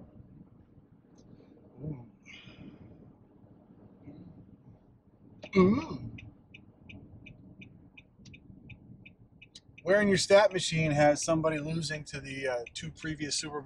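A car engine hums quietly inside the cabin.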